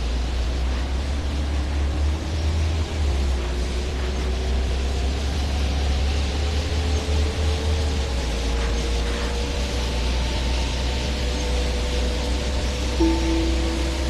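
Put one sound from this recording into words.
A bus engine whines, rising in pitch as it accelerates.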